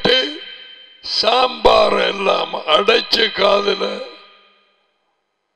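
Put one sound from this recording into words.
A middle-aged man speaks with animation into a headset microphone.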